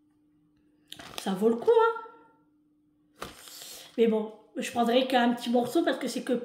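A middle-aged woman speaks with animation close to the microphone.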